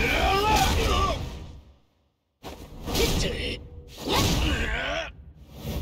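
A heavy blow lands with a loud crack.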